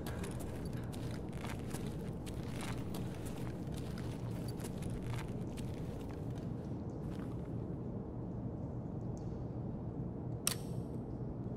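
Footsteps crunch slowly over a gritty floor.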